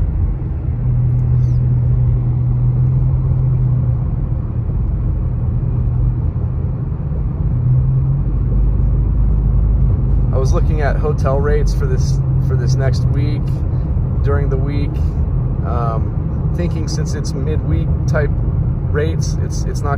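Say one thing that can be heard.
A car engine hums steadily as tyres roll over the road.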